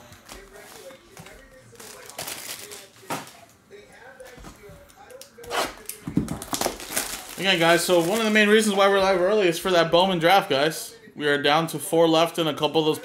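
Cardboard boxes and foil packs rustle and scrape as they are handled.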